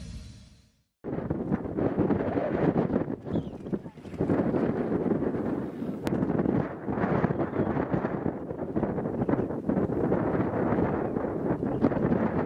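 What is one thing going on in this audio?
A volcano rumbles and roars as lava erupts.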